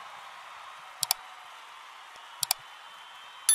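A mouse clicks twice, then twice again.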